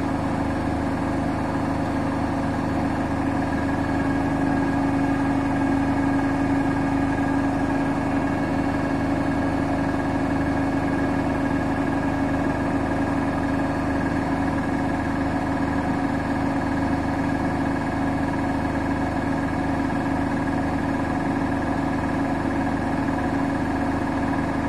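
Water swishes and sloshes inside a spinning drum.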